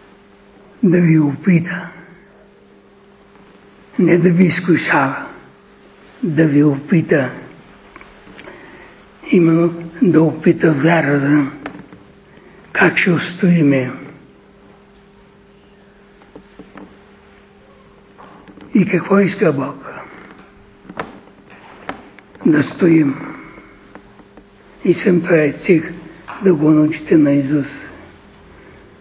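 An elderly man speaks with animation in bursts, with pauses between phrases, in a slightly echoing room.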